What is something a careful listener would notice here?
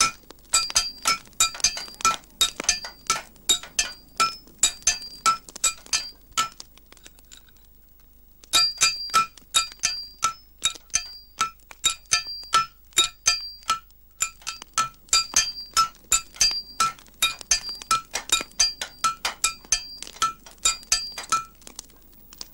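Hammers ring on metal in quick, steady blows.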